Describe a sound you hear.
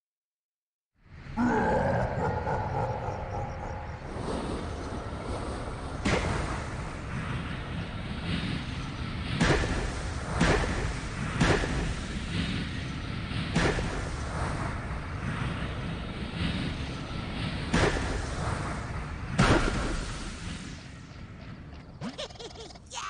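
A deep rumbling roar swells with heavy booms.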